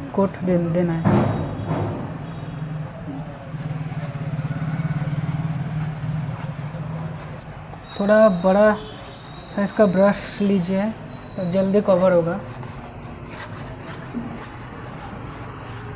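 A cloth rubs against a smooth board.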